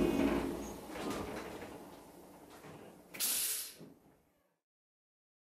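A diesel train engine idles nearby.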